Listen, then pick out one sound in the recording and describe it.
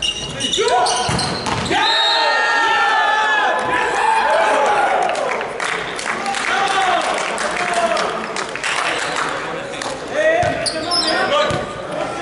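A volleyball is smacked and bounces on a hard floor in a large echoing hall.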